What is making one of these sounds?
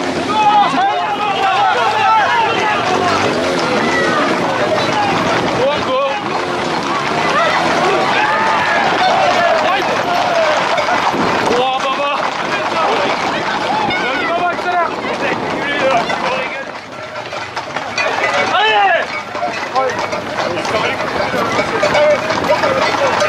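A crowd of young men shouts and whistles close by, outdoors.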